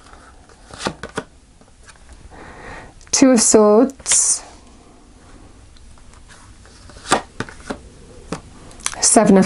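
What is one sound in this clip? Cards tap softly as they are laid on a table.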